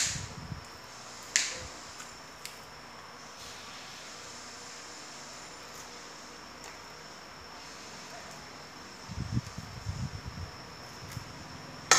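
Copper wire snaps and crackles as it is pulled out.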